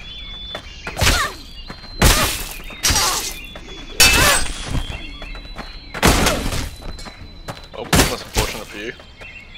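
Swords clash and strike with sharp metallic hits.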